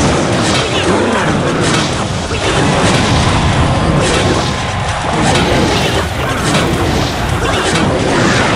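Game sound effects of clashing and explosions play loudly.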